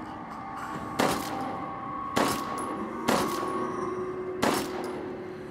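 A pistol fires several loud shots with a short ringing echo.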